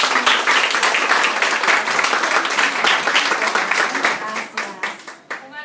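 A group of women clap and cheer loudly nearby.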